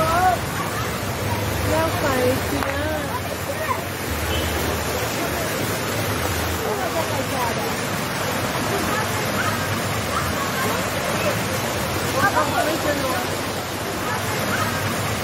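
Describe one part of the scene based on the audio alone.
A boy splashes about in the water.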